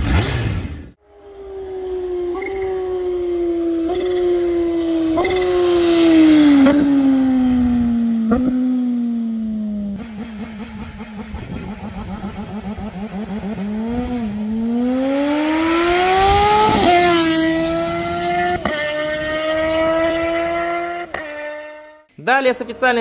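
A motorcycle accelerates past, its engine roaring and rising in pitch through gear changes.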